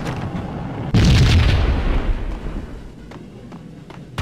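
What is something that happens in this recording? An explosion booms and roars, then fades.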